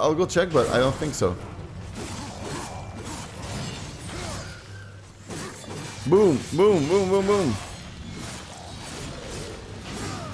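Blades clash and strike during a game fight.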